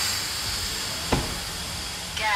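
A metal locker door bangs shut.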